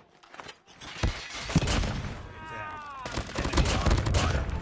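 Rapid gunfire bursts out loudly.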